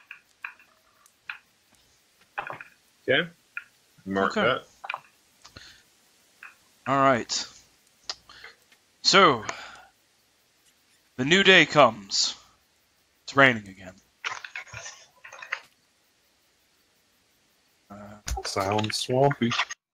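A man talks casually over an online call, in short bursts.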